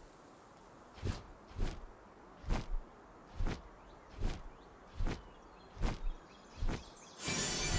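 Large wings flap with steady, regular beats.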